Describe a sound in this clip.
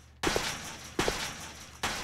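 Footsteps echo on a hard floor.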